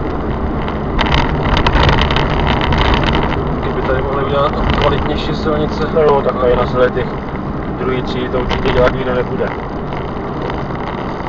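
Tyres rumble on a rough road.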